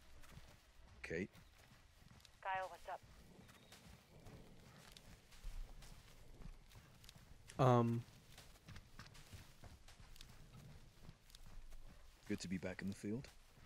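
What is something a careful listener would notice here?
A young man speaks in short bursts close to a microphone.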